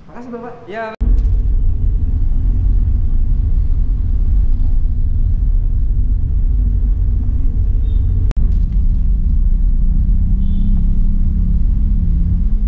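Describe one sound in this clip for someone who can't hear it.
A car engine rumbles steadily while driving along a street.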